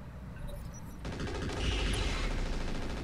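A gun fires a burst.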